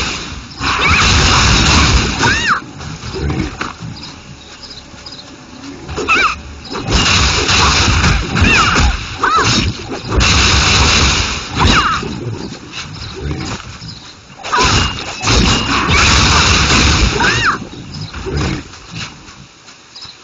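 Weapon strikes clang and whoosh in bursts of game combat.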